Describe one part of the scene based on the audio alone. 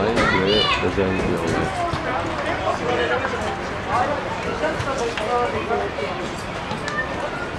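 Men shout and call out across an open outdoor field.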